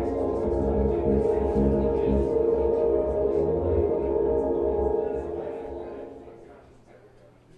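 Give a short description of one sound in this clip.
An electric bass guitar plays through an amplifier with a looper.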